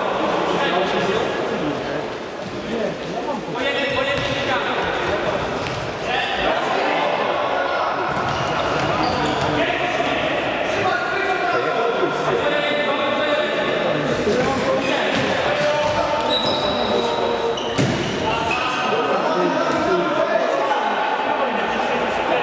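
Young men shout and call to each other in a large echoing hall.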